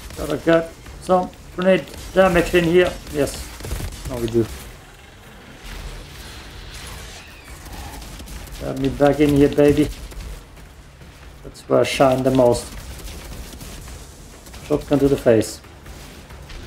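A young man talks with animation close to a microphone, in bursts.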